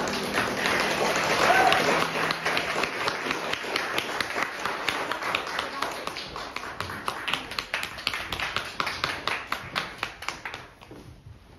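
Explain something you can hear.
Two children play a lively piano duet.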